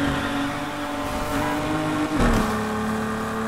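Tyres screech as a car drifts round a corner.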